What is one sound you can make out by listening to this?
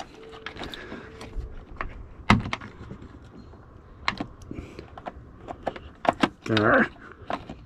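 Plastic clicks and rattles as fingers work a plug loose.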